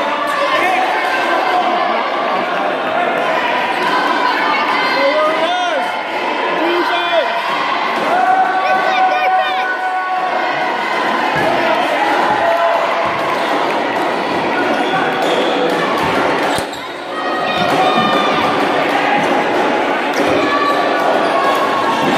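A crowd of children and adults chatters and shouts in a large echoing hall.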